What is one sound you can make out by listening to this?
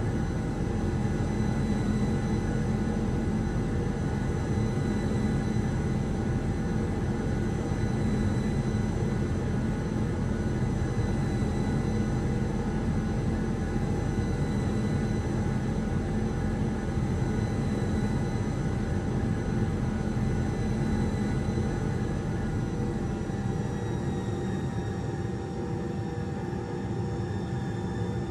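Air rushes past the airliner in a steady low rumble.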